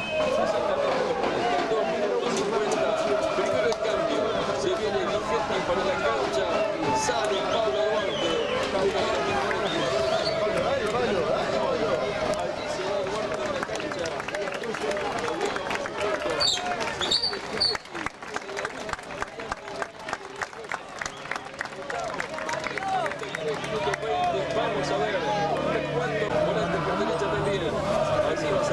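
A crowd of spectators chants and sings loudly outdoors.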